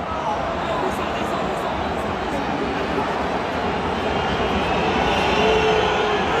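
A large stadium crowd roars and chants steadily in a huge open space.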